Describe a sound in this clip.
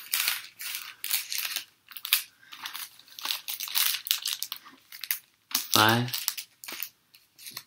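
A foil trading card pack crinkles as it is handled.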